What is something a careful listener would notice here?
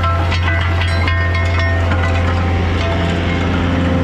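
Small stones click and rattle against metal.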